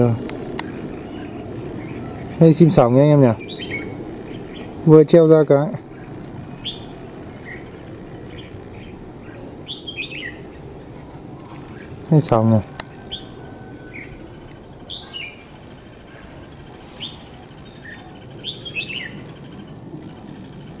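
Small birds chirp and call in short, sharp bursts.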